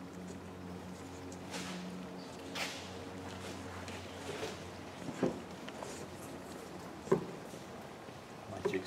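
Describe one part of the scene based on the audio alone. Hands rub and slide over cardboard.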